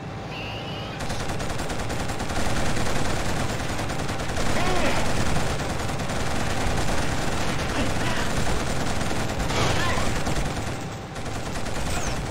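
A machine gun fires long rapid bursts.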